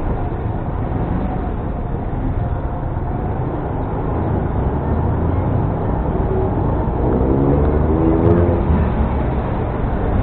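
A car engine rumbles steadily at low speed.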